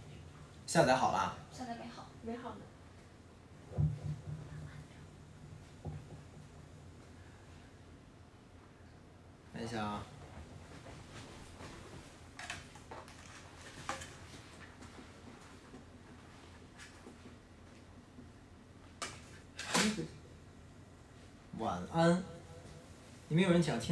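A young man speaks casually into a close microphone, in short bursts with pauses.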